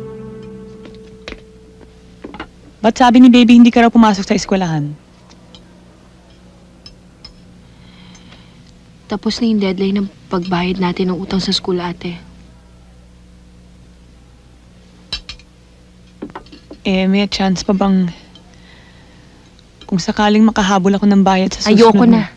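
Cutlery clinks softly against a plate.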